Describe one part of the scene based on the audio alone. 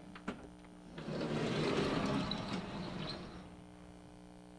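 A large chalkboard slides with a rumbling scrape.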